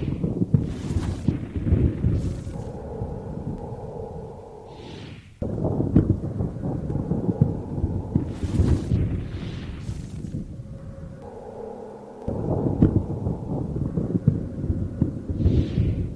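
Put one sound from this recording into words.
Spell blasts and magic effects whoosh and crackle in a battle.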